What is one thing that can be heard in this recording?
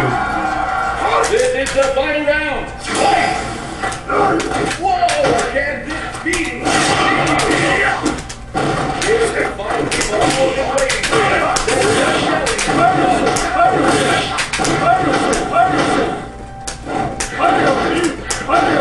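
Fast-paced game music plays steadily.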